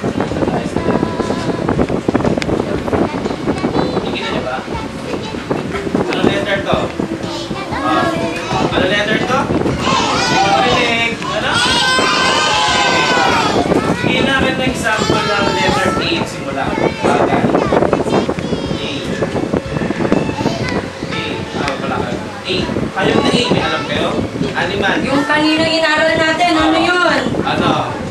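A man speaks to a group of children.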